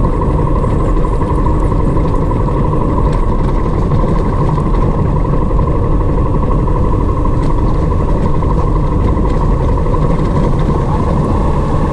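Tyres crunch and rattle over rough gravel.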